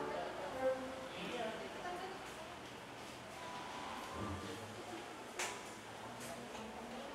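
A young woman sings through a microphone in a reverberant hall.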